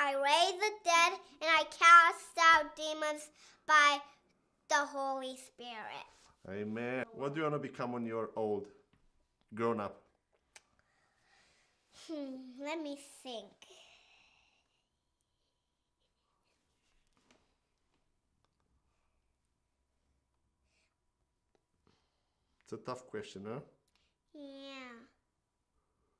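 A young boy speaks loudly and with animation, close by.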